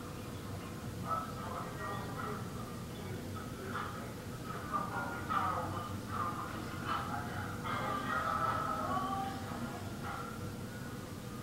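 A man speaks softly and calmly, close by.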